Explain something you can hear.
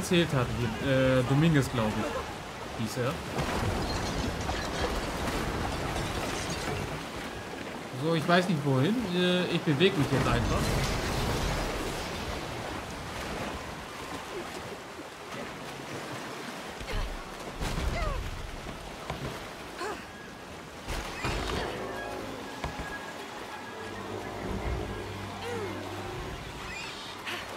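Water rushes and churns loudly.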